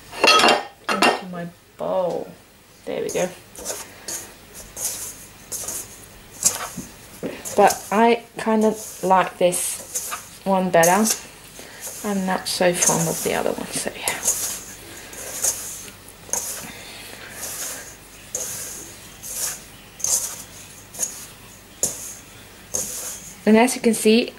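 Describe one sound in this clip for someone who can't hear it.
Hands knead dough in a metal bowl with soft squishing and scraping.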